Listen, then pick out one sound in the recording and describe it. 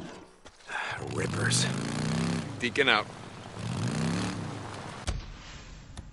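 A motorcycle engine revs and rumbles.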